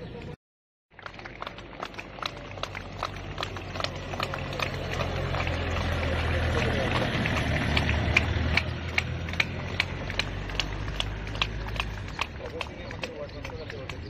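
A group of people clap their hands in a steady rhythm outdoors.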